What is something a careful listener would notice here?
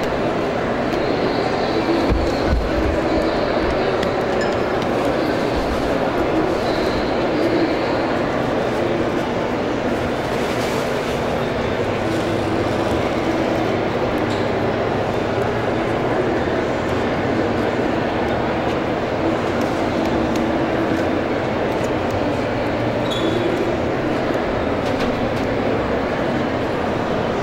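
Soft dough thumps and slaps on a metal counter as it is kneaded.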